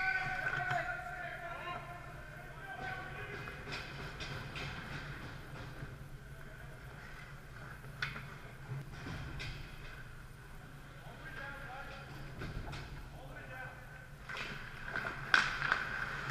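Ice hockey skates scrape and carve on the ice in a large echoing rink.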